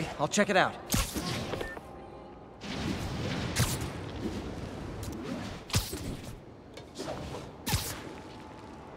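Web lines snap with sharp thwips.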